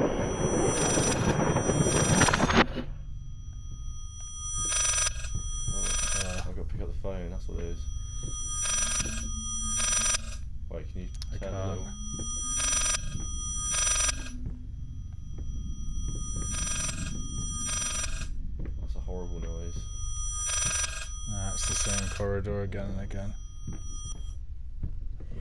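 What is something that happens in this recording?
An old telephone rings over and over in an echoing space.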